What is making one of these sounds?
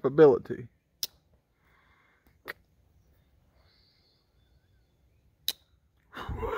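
A pocketknife blade snaps into place with a sharp click.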